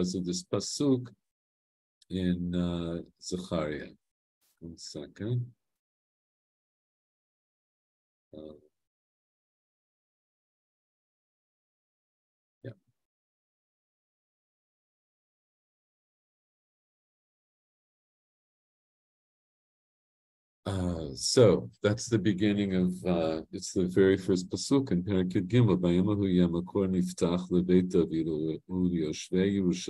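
An older man speaks calmly through a computer microphone.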